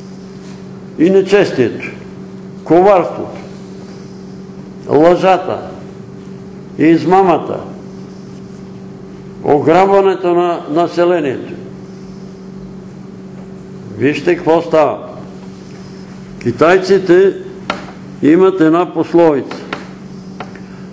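An elderly man speaks slowly in short phrases, with pauses between them.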